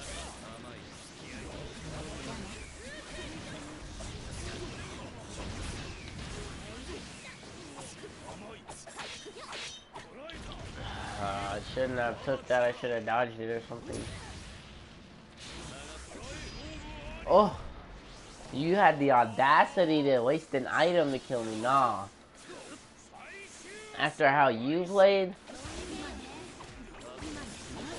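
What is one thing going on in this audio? Blows and energy blasts crash and thud in quick bursts.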